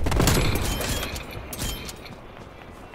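A sniper rifle fires a loud, booming shot that echoes away.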